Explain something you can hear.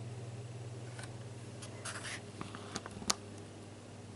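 A paper page rustles as it is turned.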